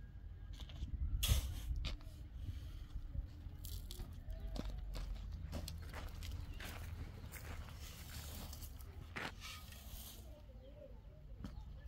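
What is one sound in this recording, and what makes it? A shovel scrapes and rakes across sand and gravel.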